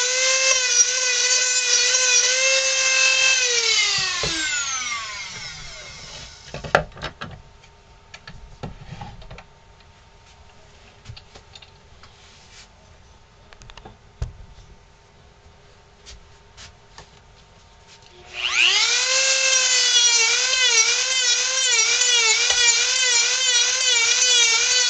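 A high-speed rotary tool whines as it carves wood, then winds down.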